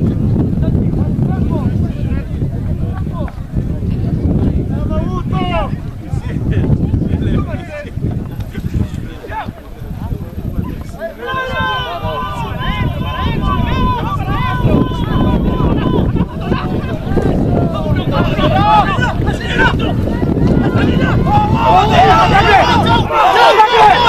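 Rugby players shout and call out to each other across an open field.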